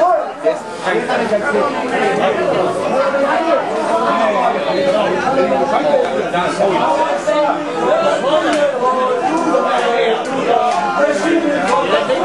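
Men talk with one another.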